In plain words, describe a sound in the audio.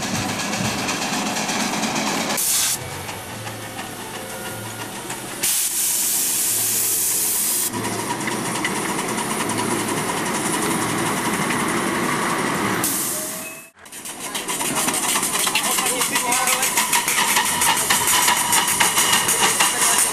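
A small steam locomotive chuffs along the rails.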